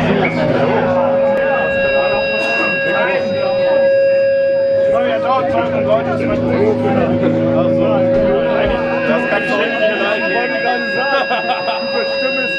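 A heavy metal band plays loudly live with distorted electric guitars.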